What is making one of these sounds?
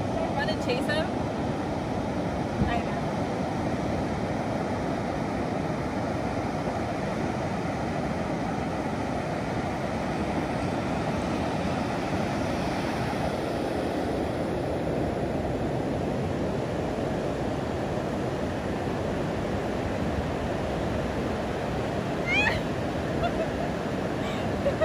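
Waves wash steadily onto a beach outdoors.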